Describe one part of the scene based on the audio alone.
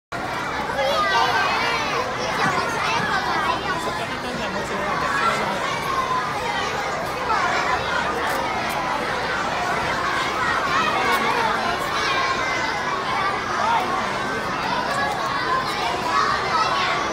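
Many young children sing together in a large echoing hall.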